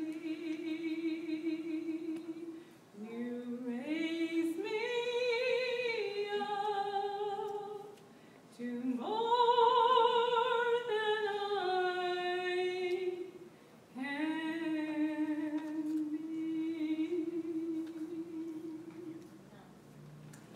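An elderly woman sings slowly into a microphone in a reverberant hall.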